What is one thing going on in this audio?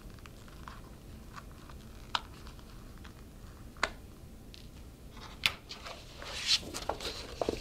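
Paper rustles and taps as hands handle it.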